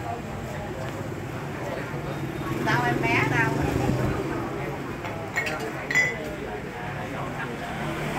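People chatter in a crowd outdoors.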